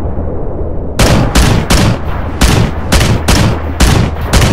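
Twin cannons fire in rapid, thumping bursts.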